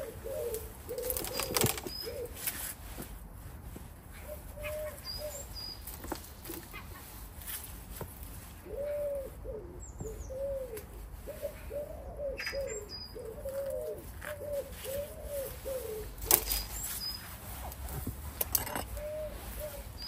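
Hands rustle and scrape through soil and plant roots close by.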